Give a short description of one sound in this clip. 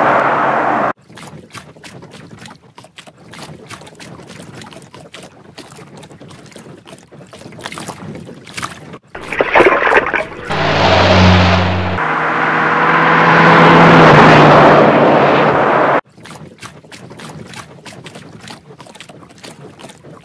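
A paddle splashes in water.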